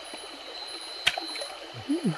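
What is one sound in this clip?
Water splashes sharply as a spear strikes into a shallow stream.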